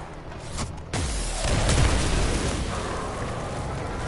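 A loud energy blast bursts and rumbles away.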